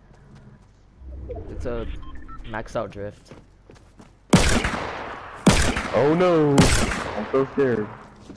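Gunshots crack loudly in short bursts.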